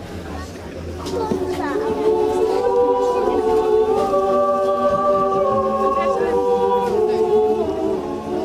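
A choir sings outdoors.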